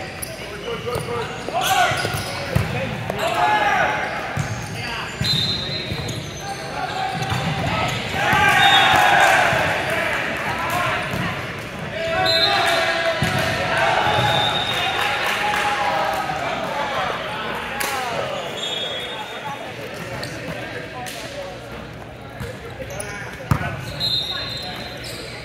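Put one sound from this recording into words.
Young men and women shout and call to each other across a large echoing gym.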